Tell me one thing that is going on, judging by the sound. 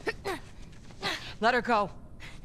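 A woman speaks firmly and coldly.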